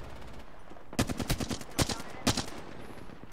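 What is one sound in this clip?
A gun fires a few quick loud shots.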